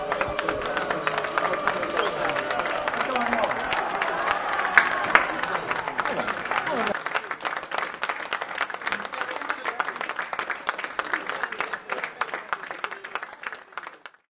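Players clap their hands in rhythm.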